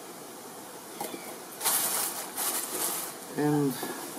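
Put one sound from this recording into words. Cardboard packaging rustles and crinkles.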